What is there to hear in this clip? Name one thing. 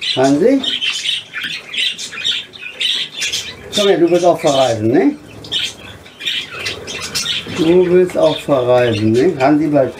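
An elderly man speaks calmly close by.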